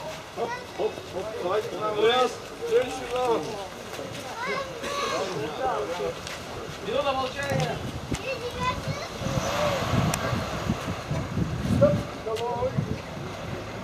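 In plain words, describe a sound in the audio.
Several men talk nearby outdoors in a crowd.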